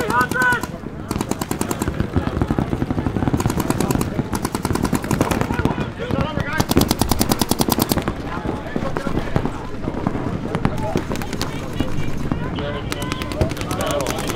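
Paintball markers fire in rapid bursts of sharp pops.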